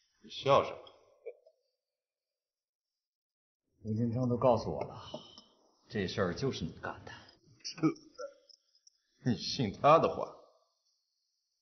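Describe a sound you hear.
A young man speaks calmly at close range.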